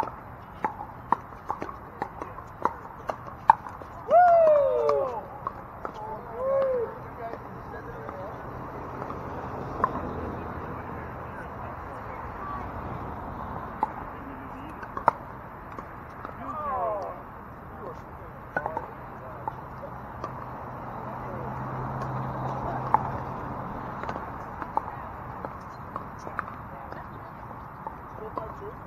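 Paddles hit a hard plastic ball with sharp pops, outdoors.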